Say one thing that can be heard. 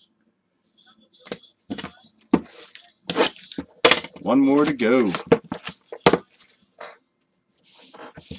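A plastic wrapper crinkles and rustles as it is handled.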